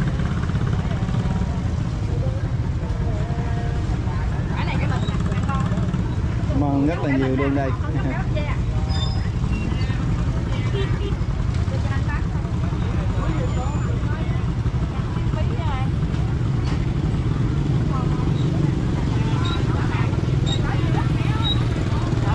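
Market vendors and shoppers chatter all around.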